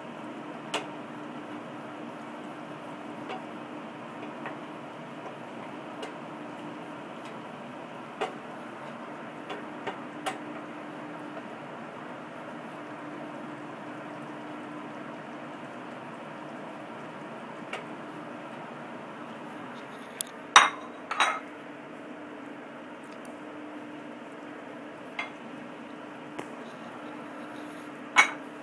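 Meat sizzles and fries in a pan.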